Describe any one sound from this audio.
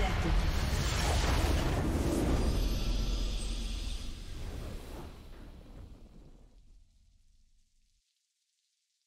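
A triumphant game fanfare booms loudly and then fades away.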